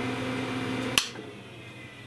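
A power switch clicks off sharply.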